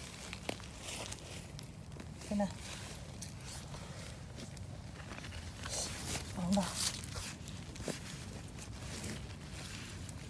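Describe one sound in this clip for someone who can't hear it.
A gloved hand rustles dry leaves and pine needles on the ground.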